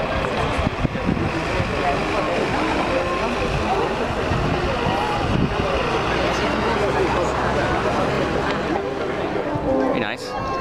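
A large crowd of men and women chatters outdoors all around.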